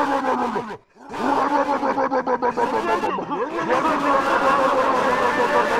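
A race car engine revs and roars.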